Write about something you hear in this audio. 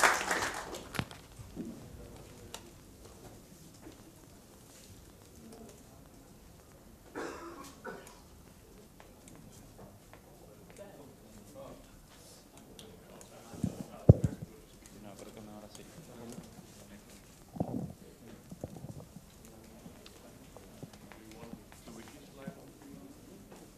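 Men chat quietly in the distance of a room.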